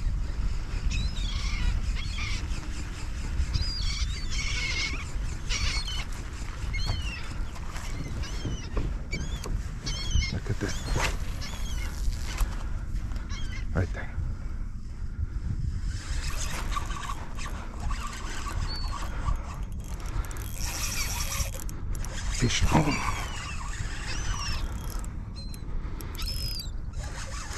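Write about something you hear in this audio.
Wind blusters steadily across open water.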